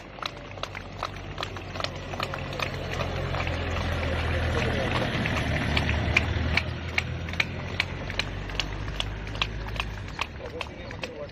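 An ambulance engine idles nearby.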